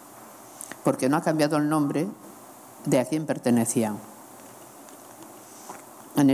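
A middle-aged woman speaks calmly and deliberately into a microphone.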